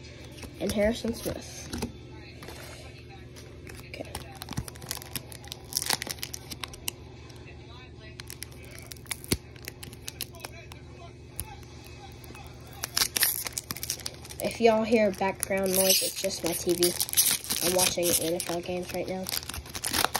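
Trading cards slide and flick against each other.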